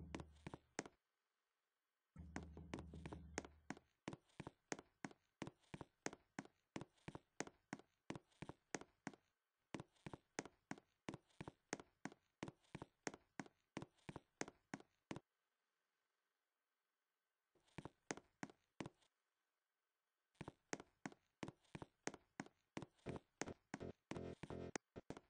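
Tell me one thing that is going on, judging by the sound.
Footsteps tap quickly and evenly on a hard surface.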